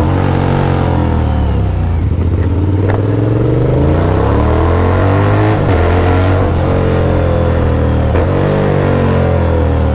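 A motorcycle engine roars up close, revving up and down as gears shift.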